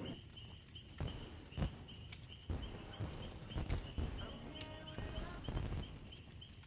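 Fireworks burst and crackle in the distance.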